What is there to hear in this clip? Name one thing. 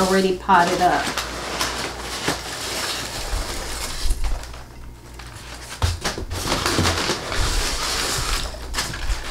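Paper packing crinkles as a woman unwraps it.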